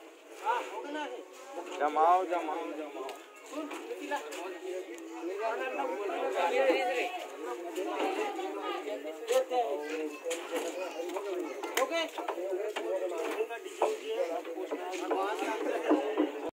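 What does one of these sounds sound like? Several young men talk and call out to each other nearby.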